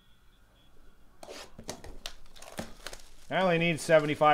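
Plastic wrapping crinkles as it is torn off a box.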